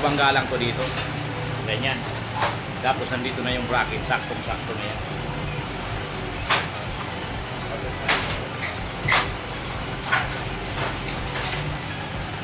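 Metal strips clatter and knock against each other.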